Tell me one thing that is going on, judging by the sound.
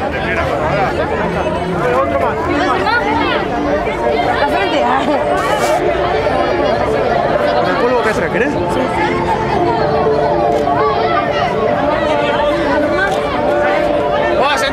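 Children chatter and call out excitedly close by.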